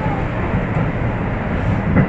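A train rushes past close by.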